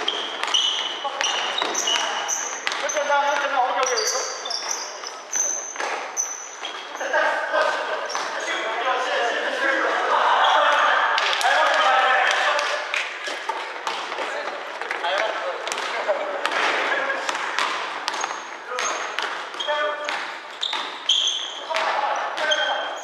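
Sneakers squeak sharply on a gym floor, over and over.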